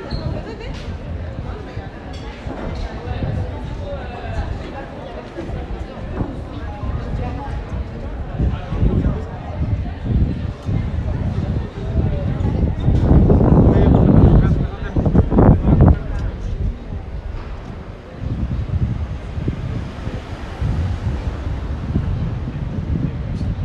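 Footsteps tap on pavement as people walk past.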